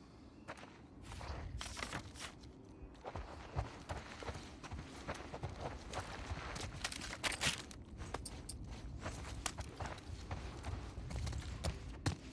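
Footsteps crunch over leaves and debris.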